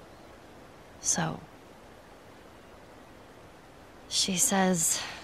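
A young girl speaks softly and hesitantly, close by.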